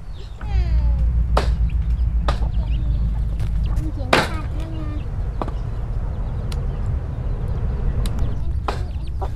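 Chickens cluck and chirp nearby.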